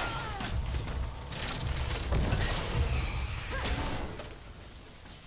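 Weapons clash and slash in a fight.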